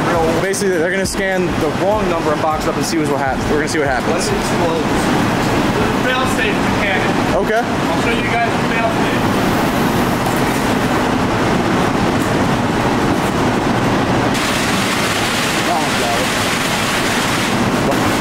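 Machinery hums steadily in a large hall.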